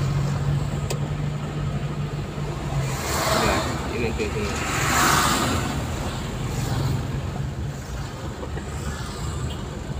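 Traffic rumbles along a busy road.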